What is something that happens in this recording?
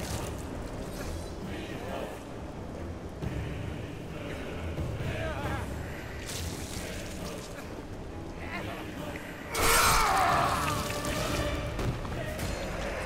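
Heavy blades slash and strike flesh with loud impacts.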